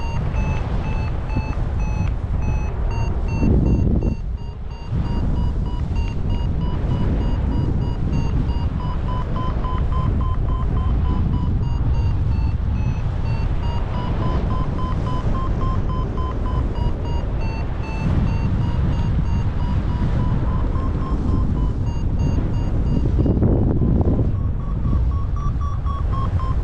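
A flight instrument beeps quickly and steadily, its pitch rising and falling.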